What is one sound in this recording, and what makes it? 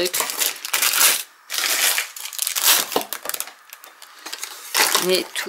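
Plastic wrap crinkles and rustles under a hand.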